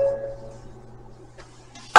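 A guitar's last note rings and fades away.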